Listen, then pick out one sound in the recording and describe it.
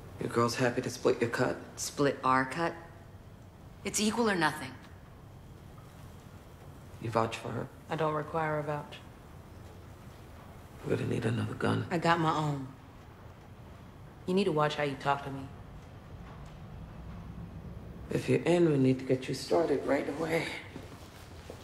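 Women talk with each other calmly and closely, in turns.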